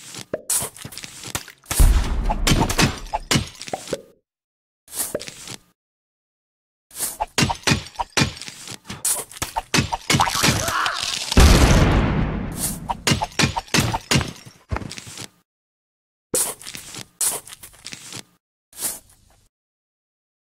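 Clay vases shatter one after another with sharp crashes.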